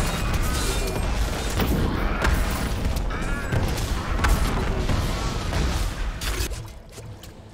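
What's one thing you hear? Magic spells crackle and blast in a busy game battle.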